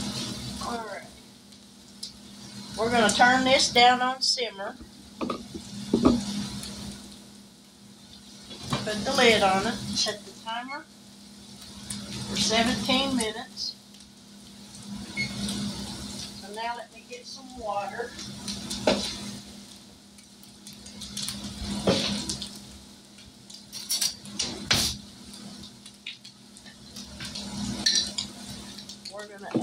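Meat sizzles and crackles in hot frying pans.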